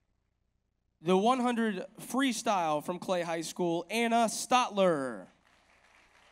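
A man speaks into a microphone over a loudspeaker in a large echoing hall.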